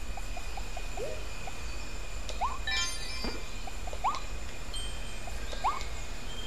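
A springy sound effect rises in pitch with each jump in a game.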